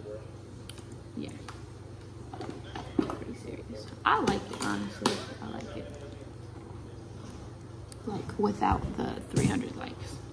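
A young woman speaks softly and close to the microphone.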